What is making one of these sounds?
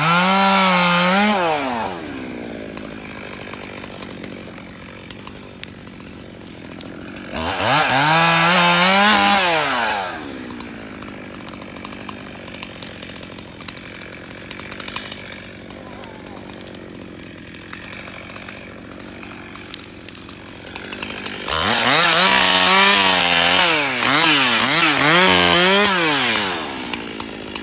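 A chainsaw revs loudly in bursts, cutting through branches.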